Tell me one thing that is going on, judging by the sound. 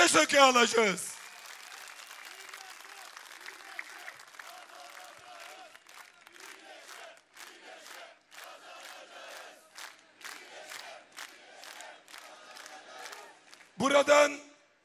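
A large crowd cheers outdoors.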